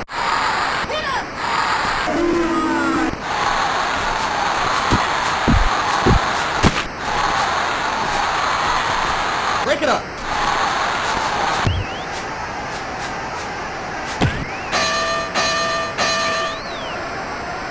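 A crowd cheers steadily.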